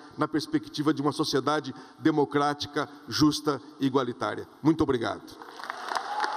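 A middle-aged man speaks forcefully through a microphone and loudspeakers.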